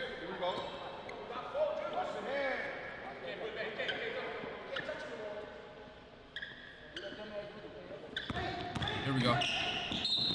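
A basketball bounces on a wooden court floor.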